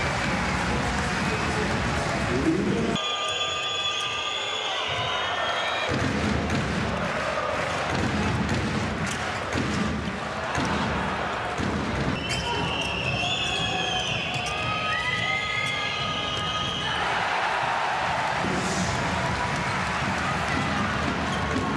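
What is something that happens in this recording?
A handball bounces on a hard court.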